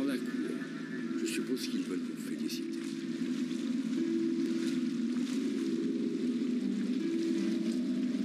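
A boat motor hums steadily.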